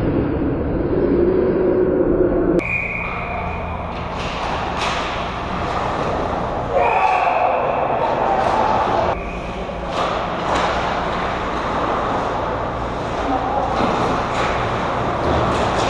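Hockey sticks clack against a puck on ice.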